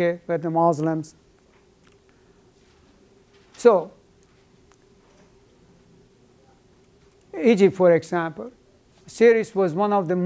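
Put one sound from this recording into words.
An older man speaks in short, lively bursts with pauses.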